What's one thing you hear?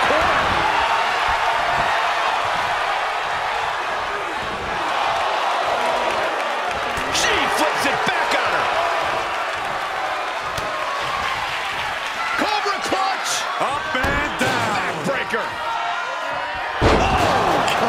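Bodies slam hard onto a wrestling ring mat.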